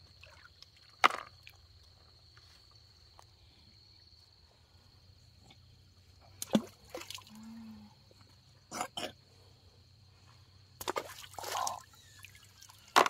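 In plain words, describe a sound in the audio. Shallow water splashes as hands move about in a stream.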